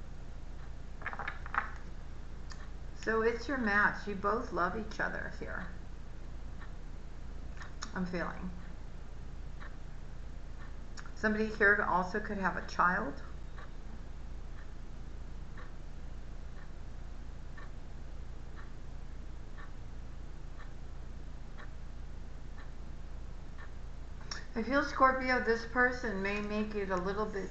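A woman speaks calmly and thoughtfully, close to a microphone, with pauses.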